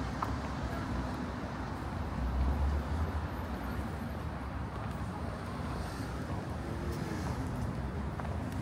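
Footsteps tap on paving stones close by.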